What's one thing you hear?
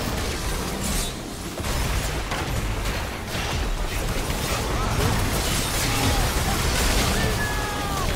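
Game spells and attacks crash and whoosh in a busy battle.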